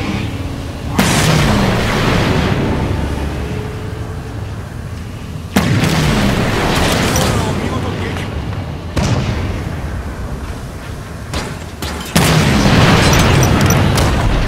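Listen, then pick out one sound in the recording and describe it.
A heavy energy weapon fires with a loud crackling blast, then slowly fades.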